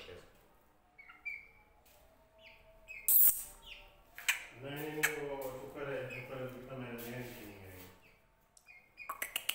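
Young chickens cheep in short, high calls now and then.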